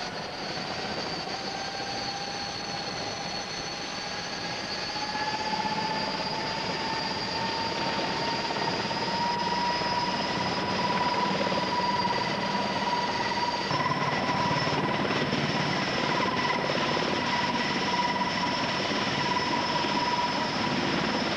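A large helicopter's engines whine loudly and steadily nearby, with the rotor thumping.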